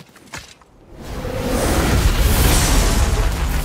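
A fire bursts up and roars loudly.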